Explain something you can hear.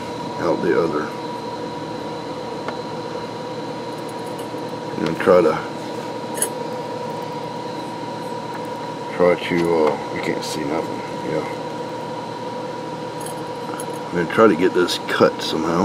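A thin metal needle scrapes and picks at a fingernail.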